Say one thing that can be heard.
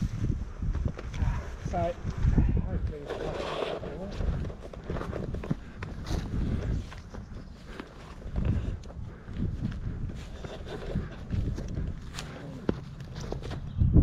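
Boots tread through dry grass up a slope.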